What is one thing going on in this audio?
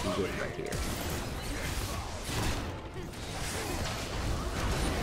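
Game characters' attacks clash and hit repeatedly.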